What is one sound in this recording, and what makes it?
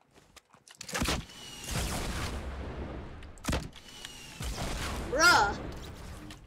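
Explosions boom loudly and echo.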